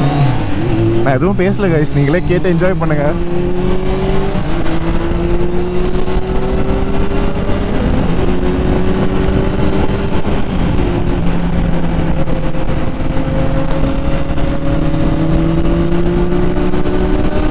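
A motorcycle engine hums steadily up close at speed.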